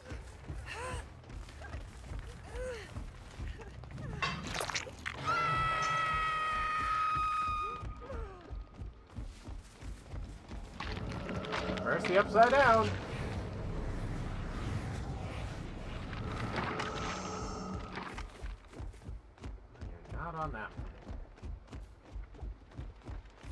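Heavy footsteps thud steadily on soft ground.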